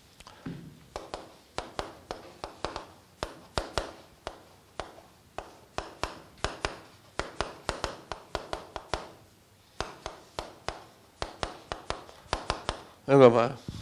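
Chalk taps and scratches on a board in quick strokes.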